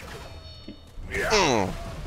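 A heavy blade strikes a creature with a wet, fleshy thud.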